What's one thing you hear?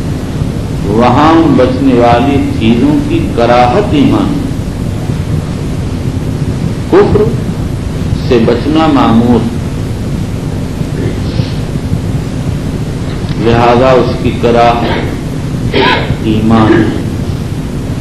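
An elderly man speaks slowly and deliberately into a microphone.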